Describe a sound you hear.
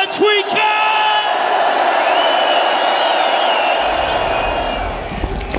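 A large crowd cheers and roars.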